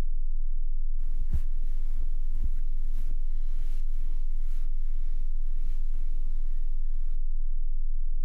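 Bedsheets rustle as a man climbs out of bed.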